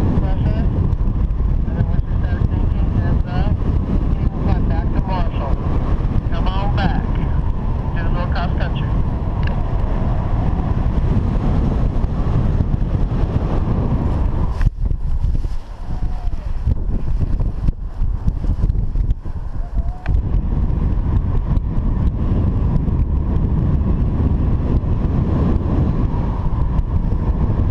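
Strong wind roars and buffets loudly, outdoors high in the air.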